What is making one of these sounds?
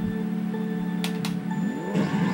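Countdown beeps sound from a video game.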